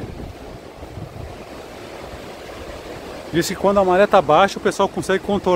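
Waves wash and break against rocks.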